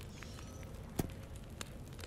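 A stone disc clicks as it turns in a puzzle lock.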